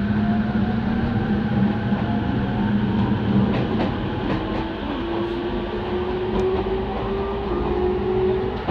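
An electric commuter train's motors whine, rising in pitch as it pulls away.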